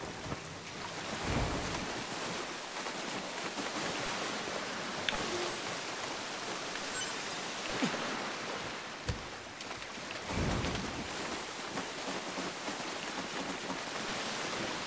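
Water splashes and sprays loudly.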